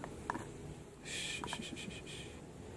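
A plastic part clicks as it is pressed down.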